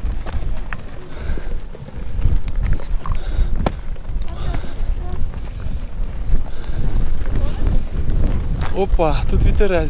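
Wind blows over the microphone outdoors.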